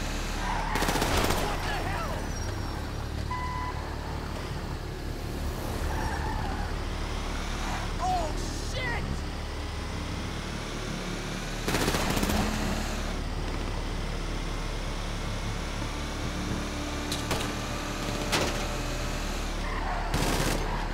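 A heavy truck engine rumbles steadily as it drives along.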